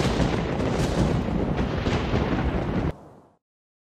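Wind roars loudly outdoors.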